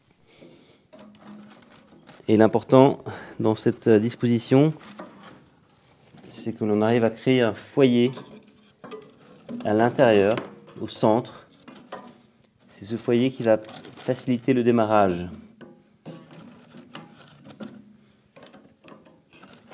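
Dry kindling sticks knock and clatter as they are laid in a cast-iron wood stove.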